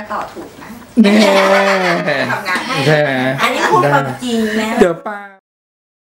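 Women laugh together loudly.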